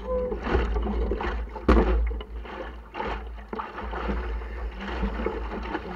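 Water splashes against a small boat's hull.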